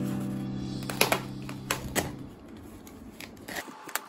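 Scissors snip through plastic.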